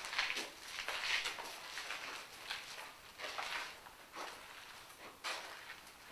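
Footsteps shuffle across a hard floor close by.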